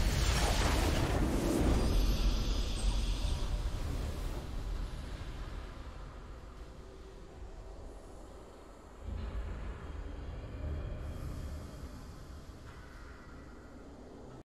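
A triumphant fanfare swells and slowly fades.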